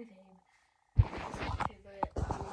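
Something knocks and rustles right against the microphone.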